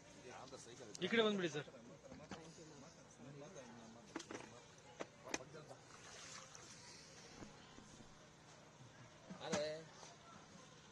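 A man speaks briefly nearby, outdoors.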